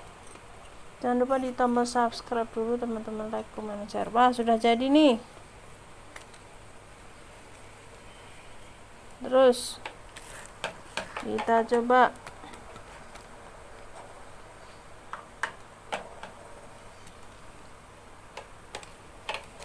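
Hard plastic parts click and rattle as they are handled.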